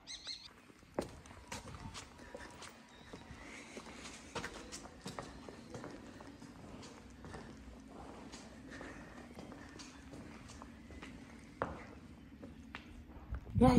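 Footsteps walk over cobblestones outdoors.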